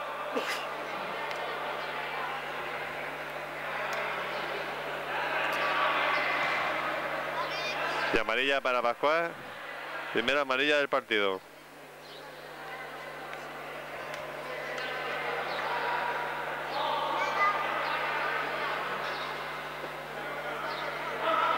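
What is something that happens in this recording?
Young men call out across a large echoing hall.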